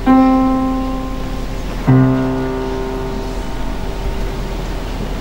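A piano plays a few sustained notes in an echoing hall.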